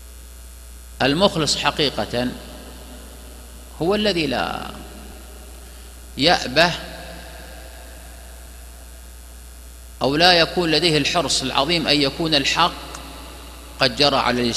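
A middle-aged man speaks calmly and deliberately into a microphone, with pauses.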